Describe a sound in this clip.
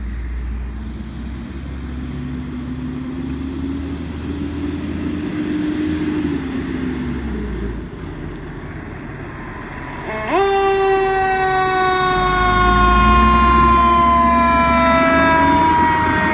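A fire engine's diesel engine rumbles as it drives closer.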